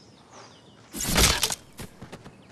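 A blow thuds hard against a rope dummy.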